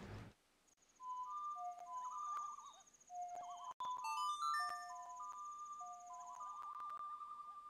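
An ocarina plays a short tune of melodic notes.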